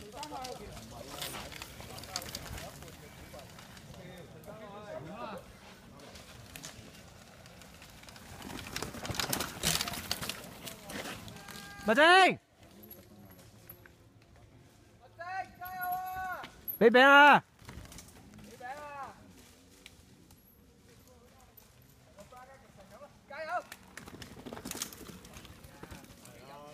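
Bicycle tyres crunch and skid over a dirt trail.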